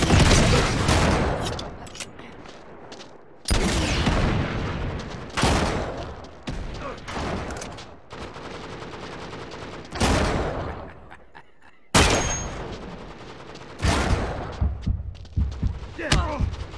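Heavy explosions boom and rumble away, one after another.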